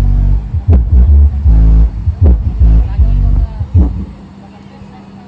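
Huge loudspeakers blast heavy booming bass music, then abruptly cut off.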